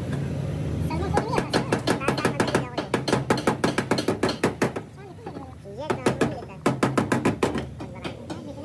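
A hammer taps rapidly on sheet metal.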